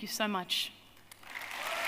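A woman speaks warmly into a microphone.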